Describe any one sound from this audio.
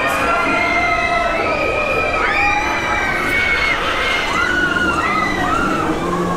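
A fairground ride whirs and whooshes as it swings round.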